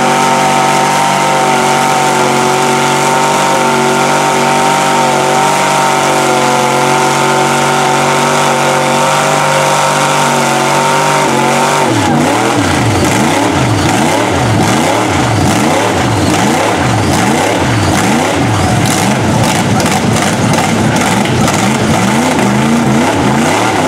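A truck engine roars and revs hard.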